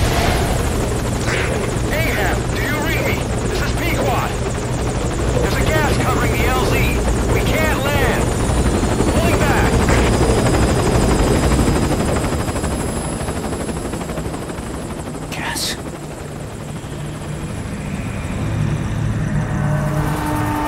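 A helicopter's rotors thud loudly overhead and slowly fade into the distance.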